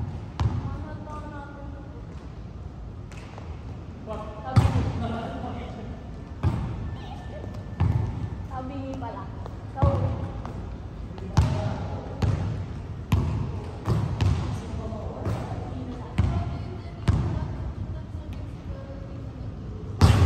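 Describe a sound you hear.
A basketball bounces loudly on a wooden floor in a large echoing hall.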